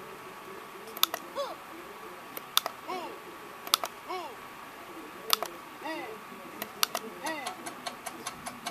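Short cartoonish electronic blips play from a computer game as blocks drop into place.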